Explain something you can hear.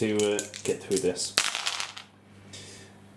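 Dice clatter as they are rolled onto a hard table.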